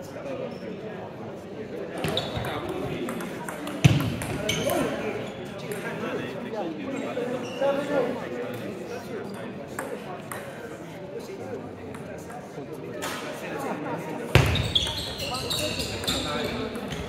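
A table tennis ball clicks back and forth between paddles and the table in an echoing hall.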